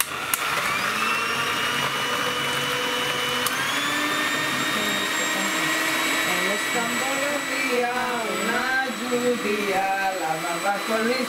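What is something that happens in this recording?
An electric hand mixer whirs steadily, beating eggs.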